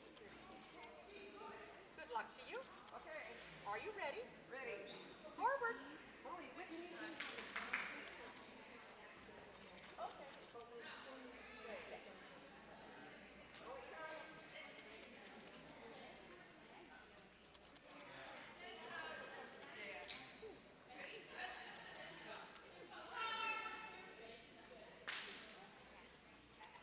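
A woman talks encouragingly to a dog nearby.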